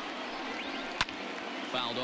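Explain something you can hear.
A baseball smacks into a catcher's mitt with a sharp pop.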